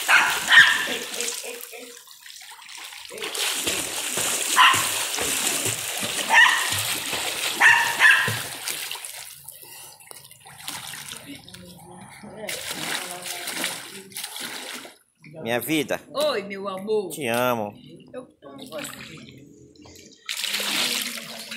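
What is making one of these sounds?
Water splashes and churns as people swim and kick.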